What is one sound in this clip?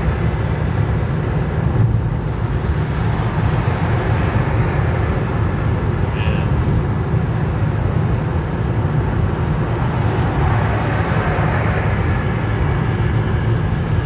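Cars swish past on the motorway.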